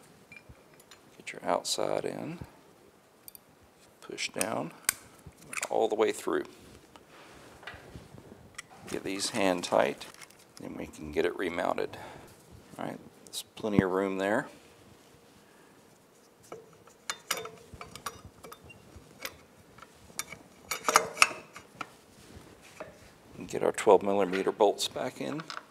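Metal parts click and clatter as they are handled.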